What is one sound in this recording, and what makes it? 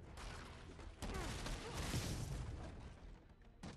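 Wooden crates crash and splinter.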